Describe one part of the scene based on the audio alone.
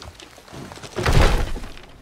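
A heavy log thuds down with a loud crash.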